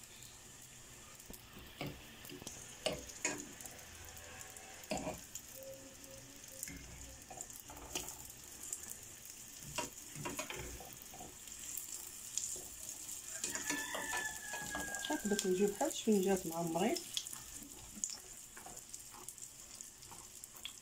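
Oil sizzles steadily in a frying pan.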